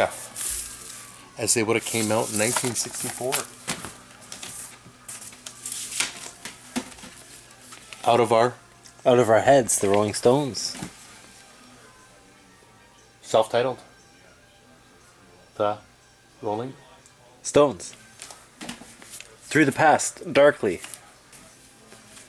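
Record sleeves rustle and slide as they are handled.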